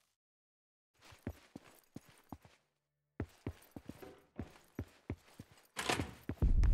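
Footsteps walk briskly across a hard floor.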